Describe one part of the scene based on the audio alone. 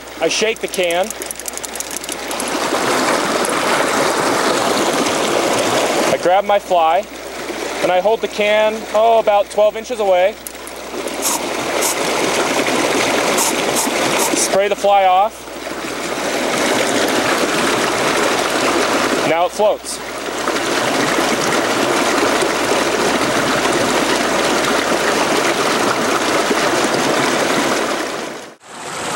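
Water babbles and splashes steadily over rocks in a shallow stream.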